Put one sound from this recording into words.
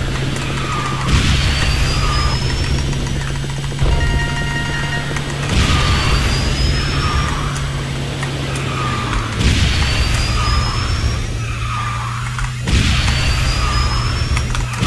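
A racing game's kart engine hums steadily.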